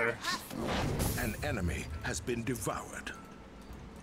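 Spell effects crackle and whoosh in a fantasy battle.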